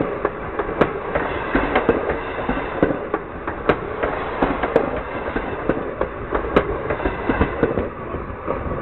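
A freight car rumbles past.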